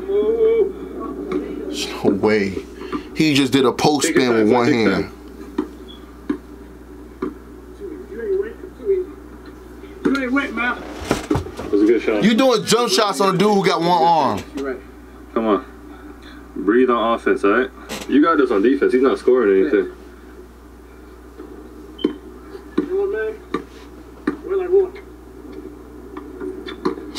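A young man talks and exclaims with animation close to a microphone.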